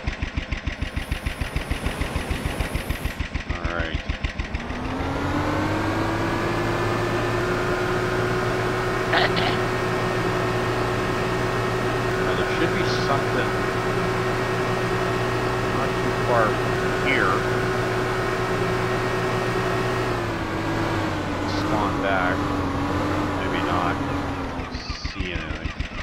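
A small outboard motor putters rhythmically at idle.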